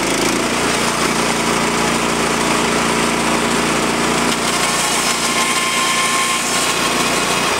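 A band saw whines loudly as it cuts through a log.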